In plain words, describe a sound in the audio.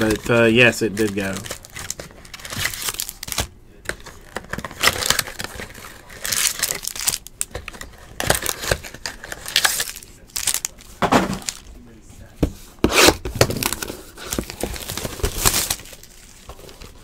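Cardboard boxes rustle and scrape as they are handled.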